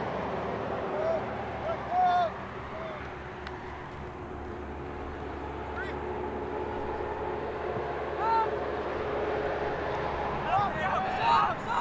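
Young women shout calls to each other across an open field.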